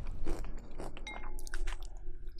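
A metal spoon clinks against a glass bowl.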